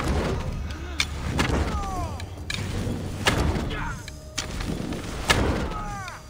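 Metal blades clash and strike in a fight.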